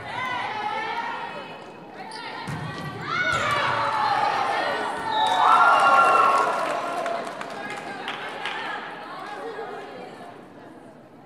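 Young women shout and cheer loudly in a large echoing gym.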